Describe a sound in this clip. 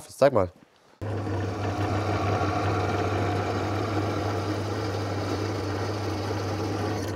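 A drill press hums steadily as it drills into metal.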